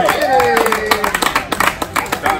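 People clap their hands rapidly.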